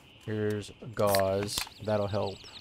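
A drink can snaps open with a fizzing hiss.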